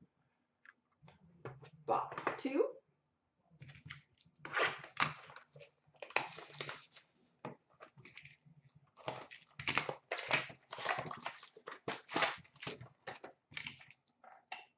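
Plastic-wrapped card packs rustle and rattle as hands sort through them.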